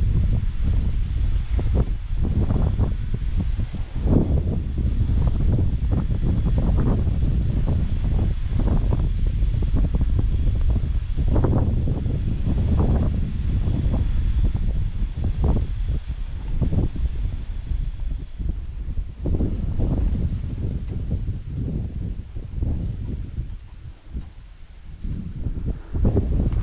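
Wind gusts roar and buffet outdoors.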